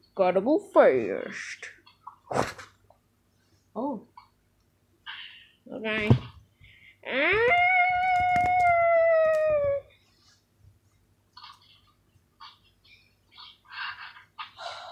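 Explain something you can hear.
Hands rustle soft plush toys against bedding.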